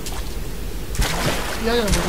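Water splashes loudly as someone drops into it.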